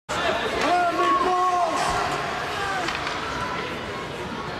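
Children shout in an echoing ice rink.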